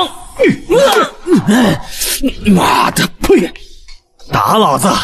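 A man cries out in pain close by.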